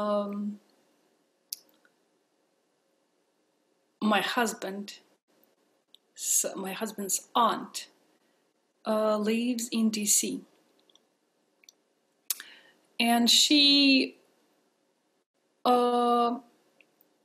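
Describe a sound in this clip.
A woman speaks calmly and warmly into a nearby microphone, with pauses between phrases.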